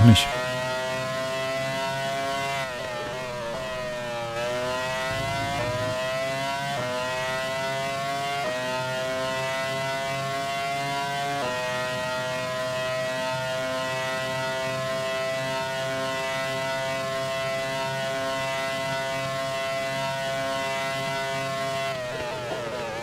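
A racing car engine screams loudly, rising in pitch through each gear and dropping with each gear change.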